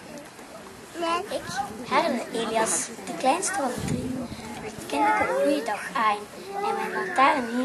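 A child speaks into a microphone, heard over a loudspeaker outdoors.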